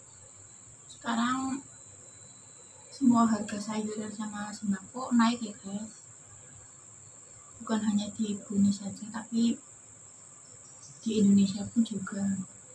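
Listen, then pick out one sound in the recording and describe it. A young woman talks close up.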